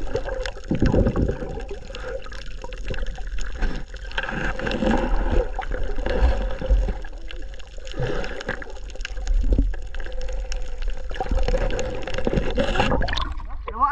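Air bubbles rumble and gurgle underwater.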